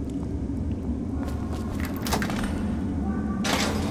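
A heavy metal gate unlocks and creaks open.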